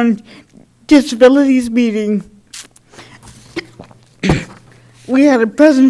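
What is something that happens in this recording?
A young person speaks calmly into a microphone.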